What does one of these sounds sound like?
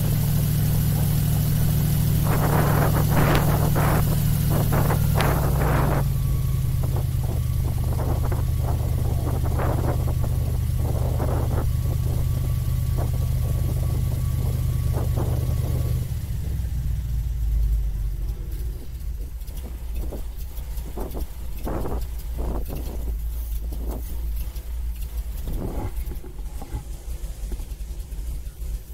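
An airboat engine drones loudly and steadily, then drops lower.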